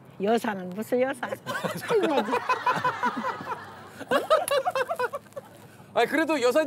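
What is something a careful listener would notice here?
An elderly woman laughs close by.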